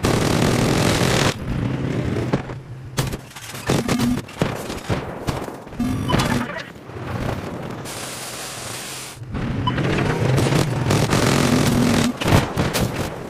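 A tank engine rumbles deeply.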